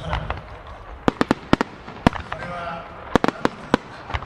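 Fireworks crackle and pop sharply.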